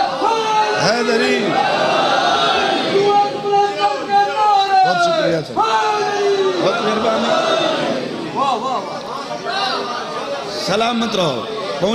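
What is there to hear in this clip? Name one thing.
A man chants loudly and with feeling into a microphone, heard through loudspeakers.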